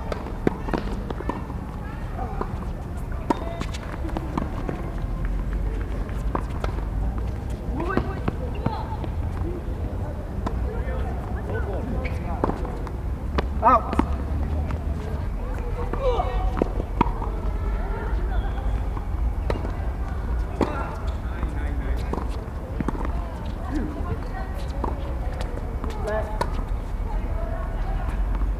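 Players' shoes squeak and scuff on a hard court.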